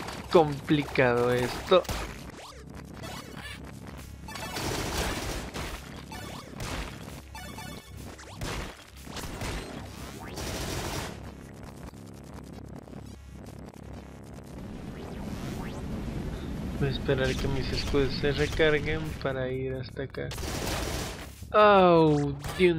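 Gunfire from a video game pops rapidly.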